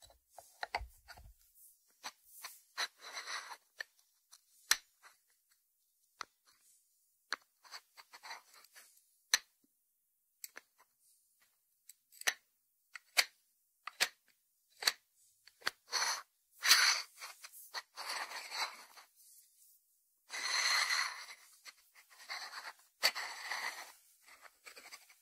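Fingertips tap on a lidded ceramic dish.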